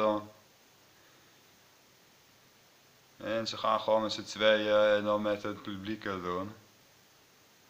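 A man speaks calmly and close up into a microphone.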